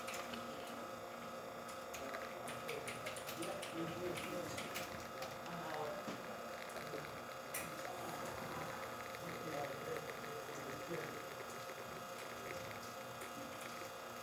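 Coffee trickles into a cup.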